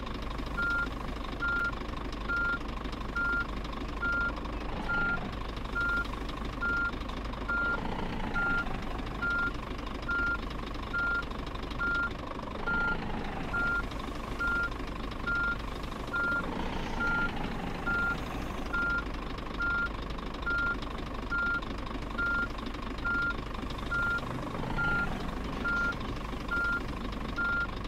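A diesel truck engine idles as the truck reverses slowly.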